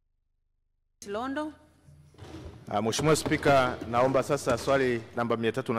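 A woman speaks calmly into a microphone, echoing slightly in a large hall.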